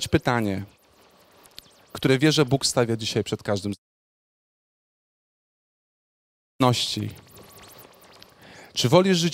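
A young man speaks with animation into a microphone through a loudspeaker.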